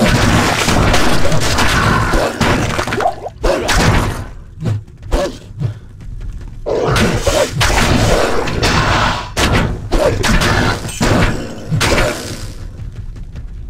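Magic spells crackle and burst.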